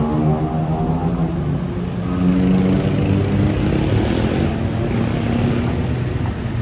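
A pickup truck engine rumbles close by as the truck pulls past.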